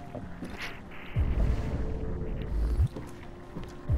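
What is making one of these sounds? Footsteps tread across a hard floor.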